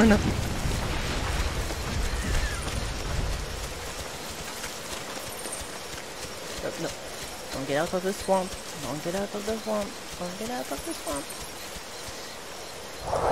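Light footsteps patter quickly through grass.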